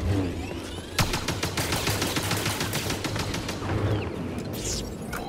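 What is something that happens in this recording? Blaster bolts fire and crackle against a lightsaber.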